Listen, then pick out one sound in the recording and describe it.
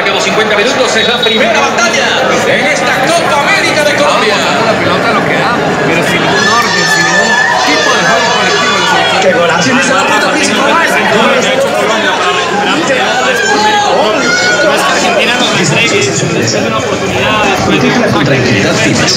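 A crowd chatters loudly all around in a large echoing hall.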